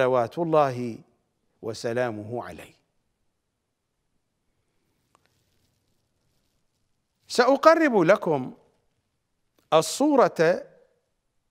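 A middle-aged man speaks with animation into a close microphone, in short bursts separated by pauses.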